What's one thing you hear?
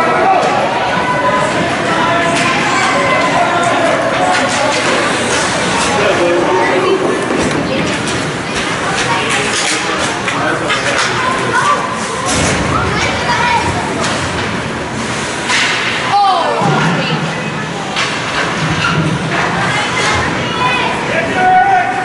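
A man shouts and calls out loudly in an echoing rink.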